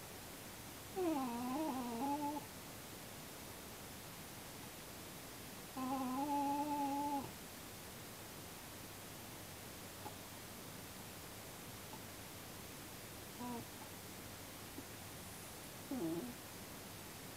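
A small animal in a carrier whines and cries loudly, close by.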